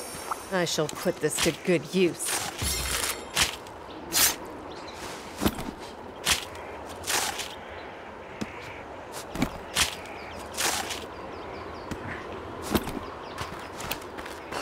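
A blade slices wetly into flesh again and again.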